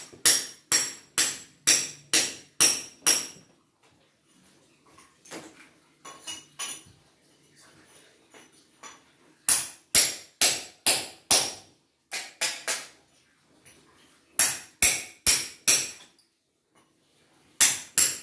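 A hammer strikes a chisel in quick bursts of sharp metallic blows.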